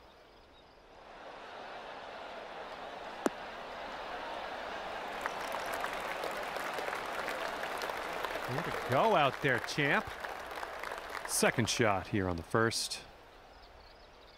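A crowd cheers and applauds, swelling and then fading.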